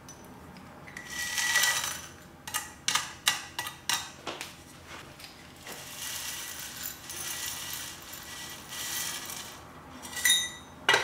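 Loose soil pours from a metal scoop and rattles into a small pot.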